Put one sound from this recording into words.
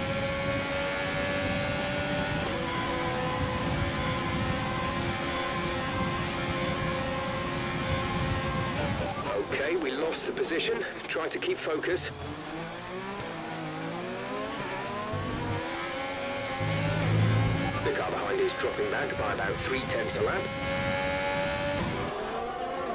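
A racing car engine screams at high revs, drops sharply while braking, then climbs again.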